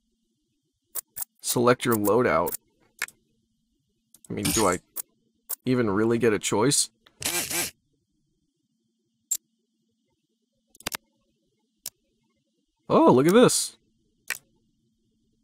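Short interface clicks sound as menu choices change.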